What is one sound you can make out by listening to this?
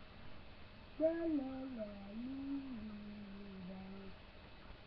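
A young child sings close to the microphone.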